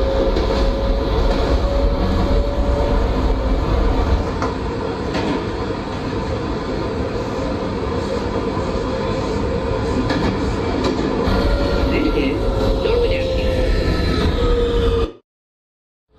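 A train rumbles along the tracks with a steady roar.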